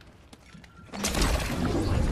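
A loud shattering burst erupts and crackles.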